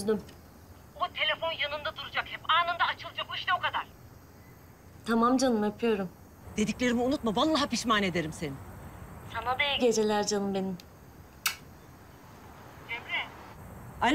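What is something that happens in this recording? A young woman talks into a phone close by.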